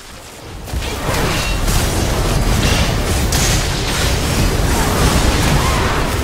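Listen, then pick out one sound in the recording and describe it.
Fantasy spell effects whoosh and crackle amid clashing combat sounds.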